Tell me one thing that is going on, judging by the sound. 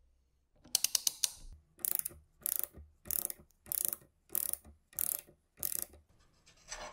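A gear puller clicks in short, steady bursts as its screw is turned.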